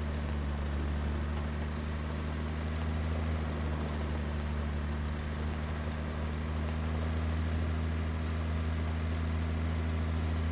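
A trailer rattles over a dirt track.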